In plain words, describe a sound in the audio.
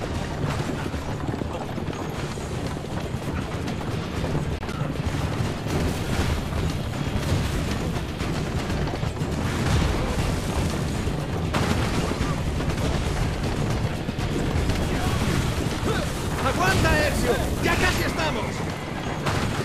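A horse-drawn carriage rumbles fast over a dirt road.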